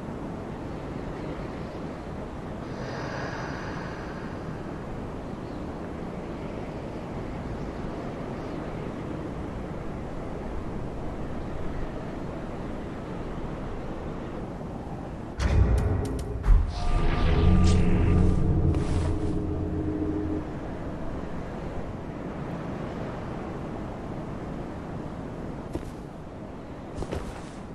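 Armoured footsteps scrape slowly on stone.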